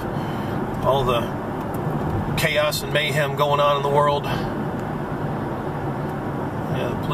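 A car drives along with a steady low rumble, heard from inside.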